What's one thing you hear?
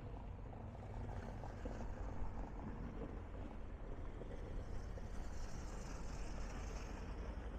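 Gentle sea waves wash against a wall.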